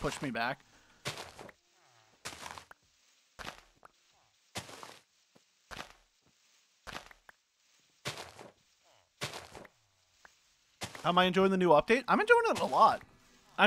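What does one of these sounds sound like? Blocks break with short crunching bursts, about once a second.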